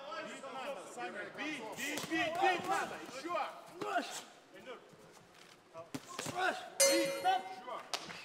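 Gloved punches thud against a boxer's body.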